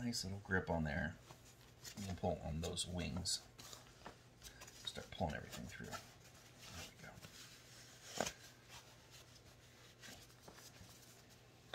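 Fabric rustles and crinkles as hands turn it.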